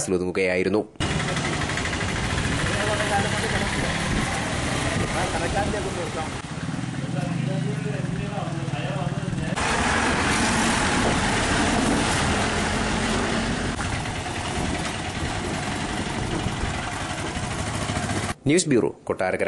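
Motor scooters and auto-rickshaws putter past over a bumpy road.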